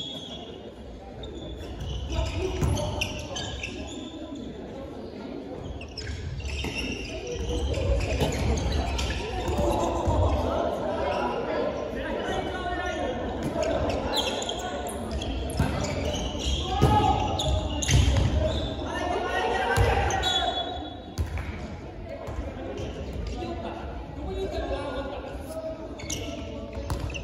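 Sneakers squeak and patter on a wooden floor.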